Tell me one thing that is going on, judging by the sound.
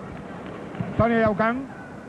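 A volleyball is struck hard.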